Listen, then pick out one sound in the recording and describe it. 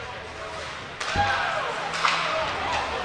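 A hockey stick clacks against a puck.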